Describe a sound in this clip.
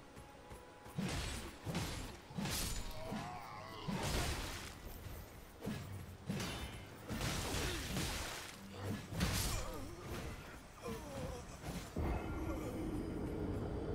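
Metal weapons clash and strike heavily in a fight.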